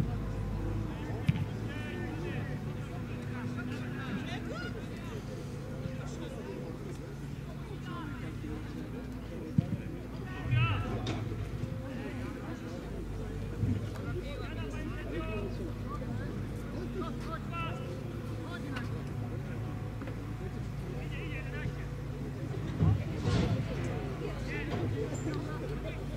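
Young men shout to each other far off across an open field.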